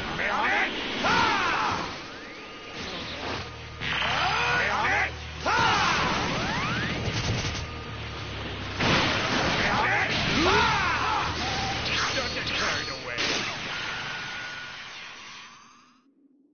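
Energy blasts roar and explode in a fight.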